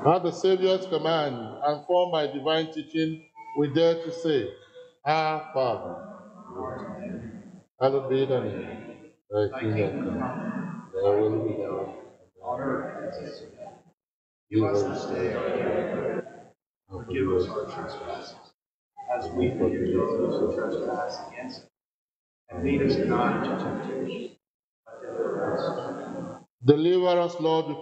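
A man recites a prayer slowly and solemnly through a microphone, in a large echoing hall.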